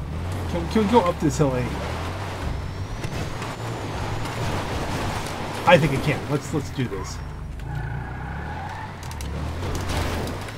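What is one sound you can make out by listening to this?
A car engine rumbles and strains while climbing.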